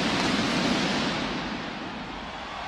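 A pyrotechnic burst whooshes loudly.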